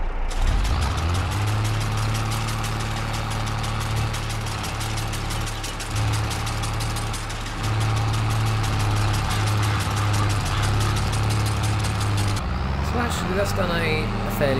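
A tractor engine chugs steadily.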